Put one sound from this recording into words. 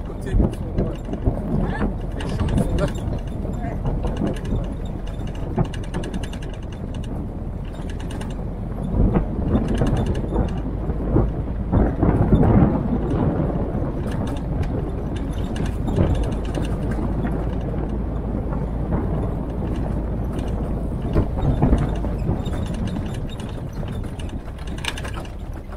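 A jeep body rattles and clunks over bumps.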